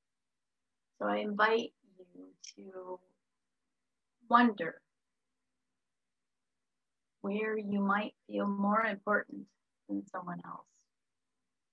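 A middle-aged woman speaks calmly over an online call, in short phrases with pauses.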